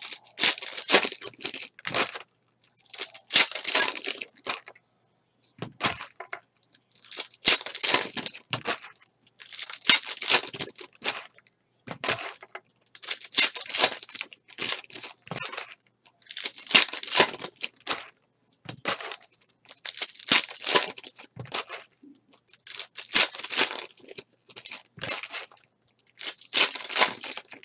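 Foil wrappers of trading card packs crinkle and tear as hands rip them open.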